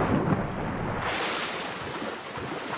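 A body plunges into water with a heavy splash.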